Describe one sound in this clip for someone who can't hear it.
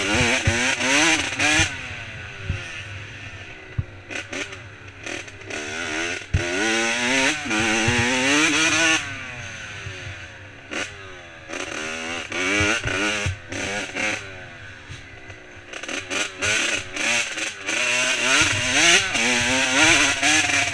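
A dirt bike engine revs up and down, rising and falling in pitch.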